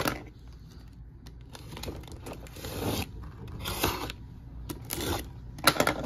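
A blade slices through packing tape on a cardboard box.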